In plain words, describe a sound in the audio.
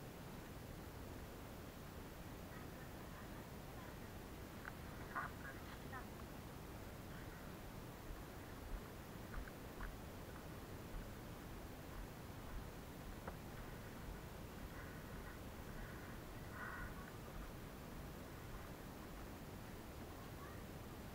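Footsteps crunch on a stony dirt path.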